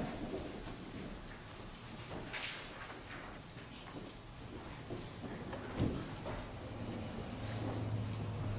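Footsteps shuffle softly across a floor in an echoing hall.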